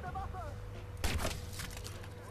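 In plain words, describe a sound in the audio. A single gunshot cracks sharply.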